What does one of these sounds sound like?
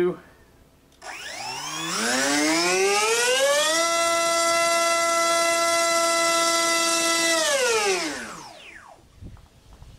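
An electric motor spins up to a high steady whine, then winds down.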